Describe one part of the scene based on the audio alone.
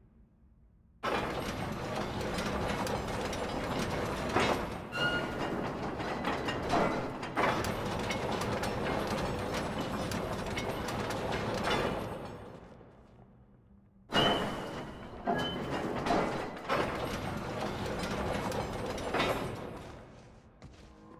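A heavy wooden winch creaks and rattles as it turns.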